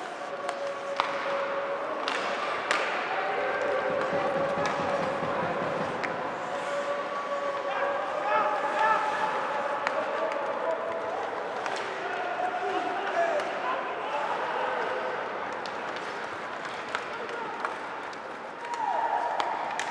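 Hockey sticks smack a puck with sharp clacks.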